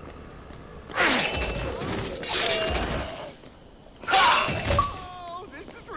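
Heavy blows thud and smash in a fight.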